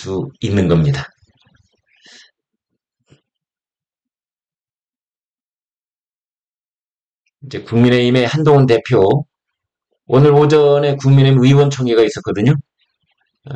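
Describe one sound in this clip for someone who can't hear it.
A man speaks calmly and close to a microphone, with pauses.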